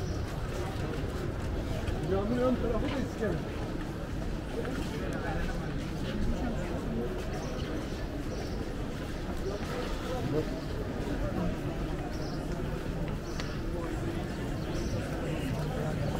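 Footsteps patter on paving stones.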